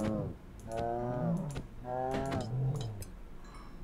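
Sword blows thud against a creature.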